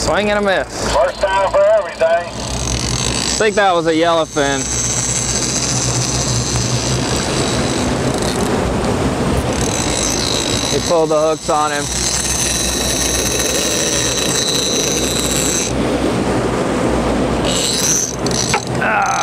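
A boat engine rumbles steadily.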